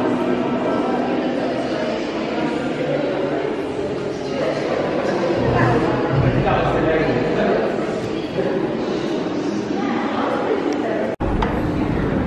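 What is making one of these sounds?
Many people talk in a low murmur in an echoing hall.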